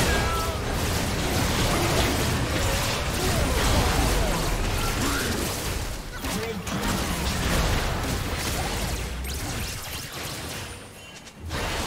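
Magical blasts and clashing battle effects burst rapidly in a video game fight.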